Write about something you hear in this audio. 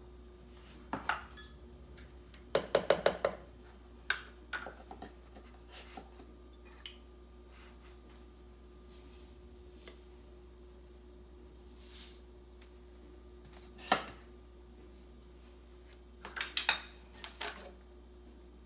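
Containers knock and clink on a hard counter.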